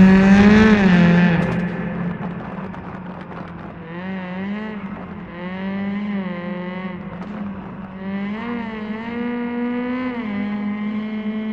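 A rally car engine roars loudly, its pitch rising and falling as it shifts gears.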